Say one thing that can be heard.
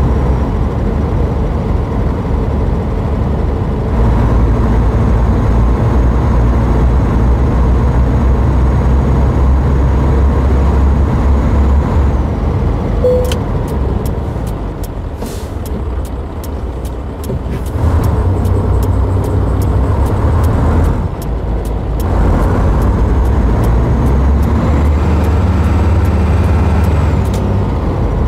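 A truck engine rumbles steadily, rising and falling as it speeds up and eases off.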